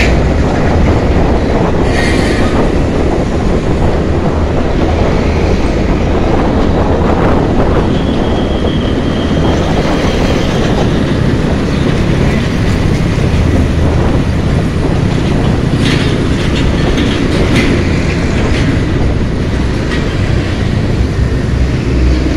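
Traffic rumbles along the road nearby.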